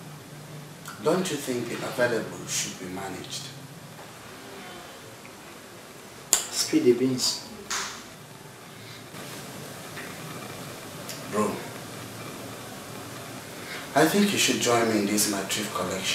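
A young man speaks calmly and languidly close by.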